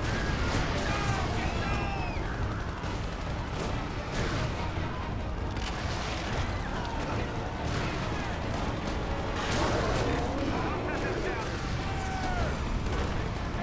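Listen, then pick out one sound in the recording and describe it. A fire roars with a deep, steady rumble.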